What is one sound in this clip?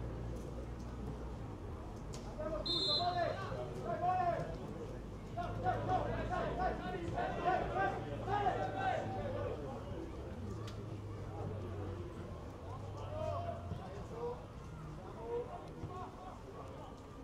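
A football is kicked outdoors in the distance.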